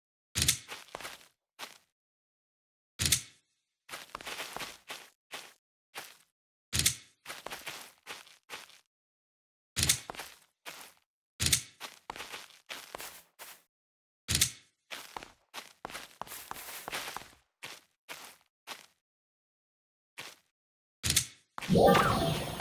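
A blade swishes through the air and strikes with sharp hits, in repeated bursts.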